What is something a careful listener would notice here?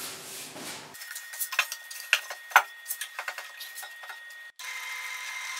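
Wood knocks and taps as it is set in place.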